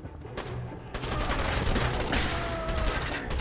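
A rifle fires several loud shots in quick succession.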